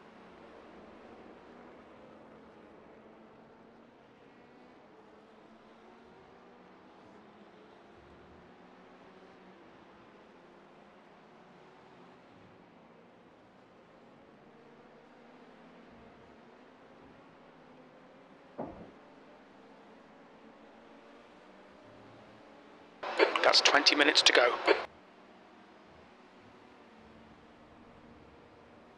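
A race car engine drones steadily.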